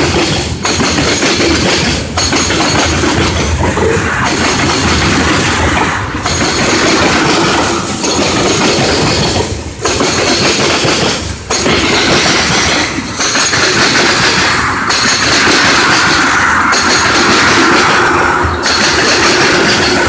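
A freight train rolls past close by with a loud, steady rumble and rattle.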